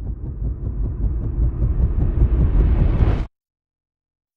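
A massive ship rumbles deeply as it moves slowly along.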